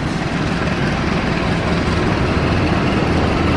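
A locomotive engine hums and rumbles as it draws near.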